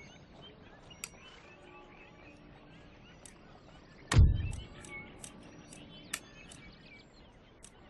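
Soft interface clicks sound now and then.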